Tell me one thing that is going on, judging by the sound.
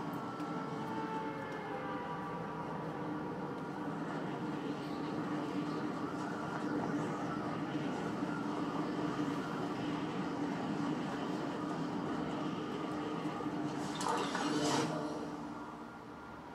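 Wind rushes steadily during a game character's skydive.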